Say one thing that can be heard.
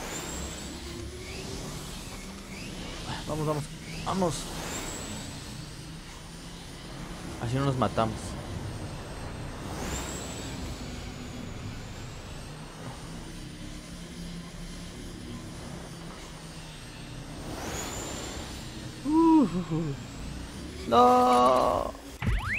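A hoverboard hums steadily.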